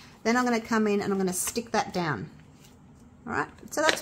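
A sheet of thin plastic film crinkles as it is handled.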